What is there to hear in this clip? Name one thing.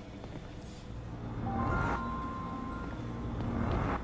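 Short electronic beeps chime.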